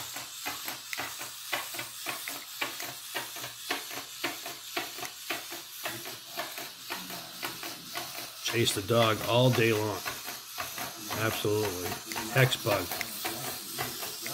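A small robot toy's legs tap and click rapidly on a wooden table.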